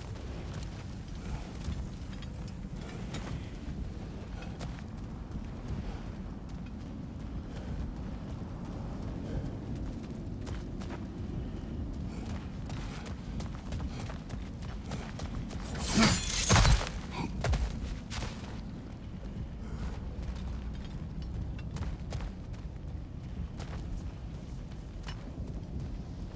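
A low wind rumbles steadily.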